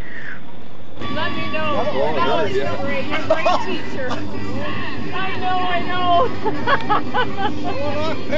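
A man laughs loudly nearby.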